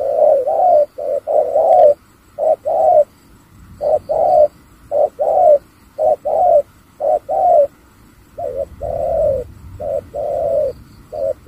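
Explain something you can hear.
A small kitten meows loudly and repeatedly, close by.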